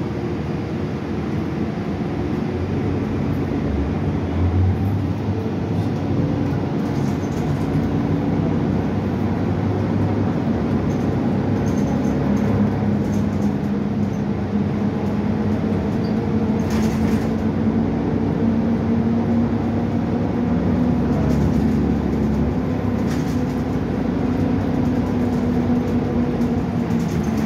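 The bus interior rattles and creaks over the road.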